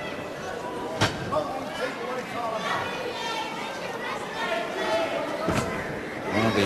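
Feet thud on a wrestling ring's mat.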